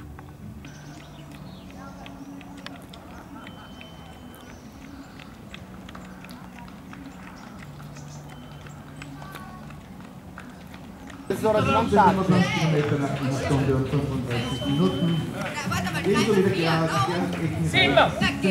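Runners' footsteps patter on a paved path.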